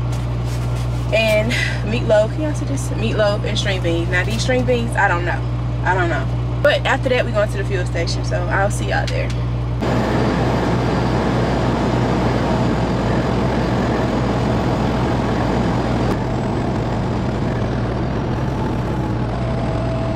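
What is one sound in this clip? A truck engine hums steadily inside a cab.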